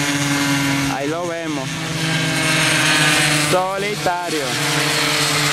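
A small motorbike engine revs high as it races past, rising and falling in pitch.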